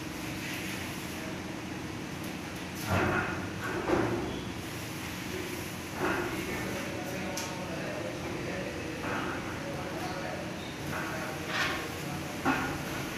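A tool scrapes against a plaster ceiling in short bursts.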